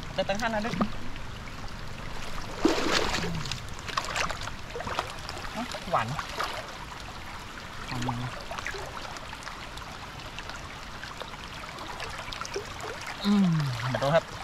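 Water splashes as a man wades through a flooded stream.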